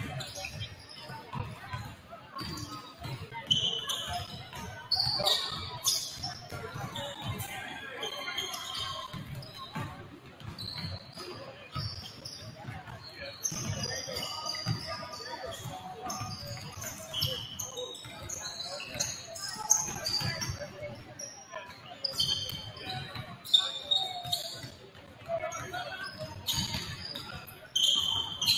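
Young people chatter and call out across the gym.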